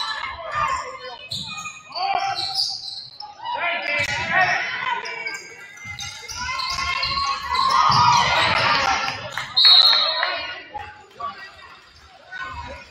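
Spectators in a large echoing gym shout and cheer.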